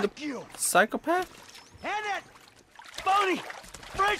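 Water splashes as a man climbs out of a pool.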